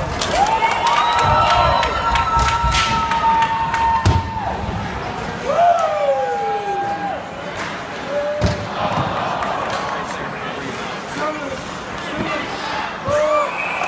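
Ice skates scrape across the ice.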